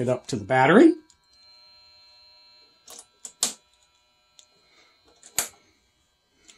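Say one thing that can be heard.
A spring clamp snaps onto a battery terminal.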